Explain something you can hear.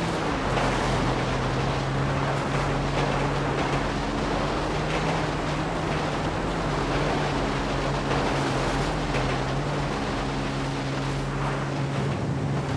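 A freight train rumbles and clatters along the tracks alongside.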